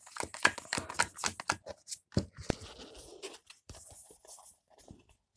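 Cards slide and tap against a tabletop.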